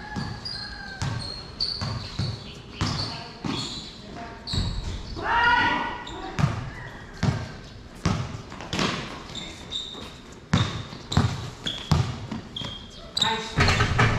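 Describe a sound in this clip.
Sneakers squeak sharply on the court floor.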